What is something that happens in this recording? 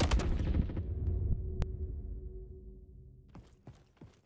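A loud explosion booms and slowly rumbles away.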